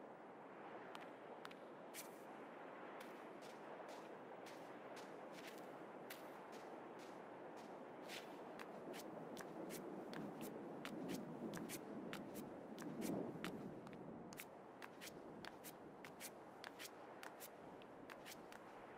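Soft footsteps crunch on sand at a steady pace.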